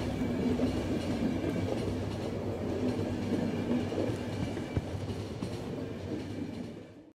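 A train rumbles steadily along its tracks.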